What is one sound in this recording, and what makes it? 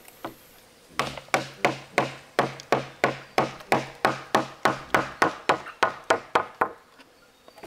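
A hammer taps rapidly and steadily on wood.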